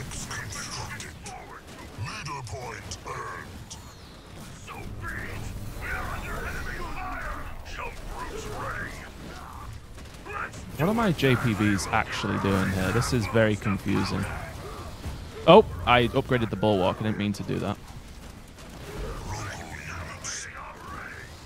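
Weapons fire and blasts crackle in a busy battle.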